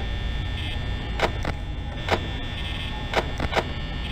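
A monitor flips up with a short clatter.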